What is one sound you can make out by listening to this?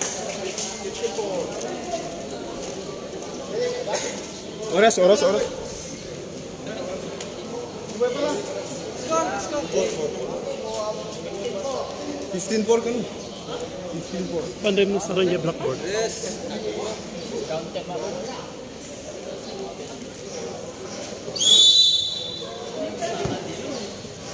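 Young men chat and call out to each other nearby.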